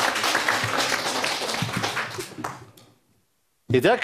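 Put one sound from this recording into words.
A crowd of young people claps loudly.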